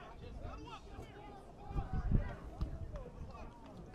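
Football players' pads thud as they collide.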